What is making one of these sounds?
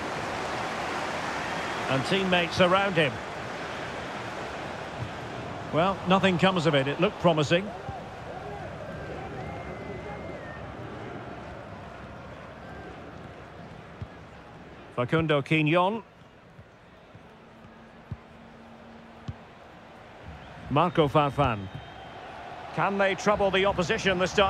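A large crowd murmurs and cheers steadily in a big open stadium, fading slowly.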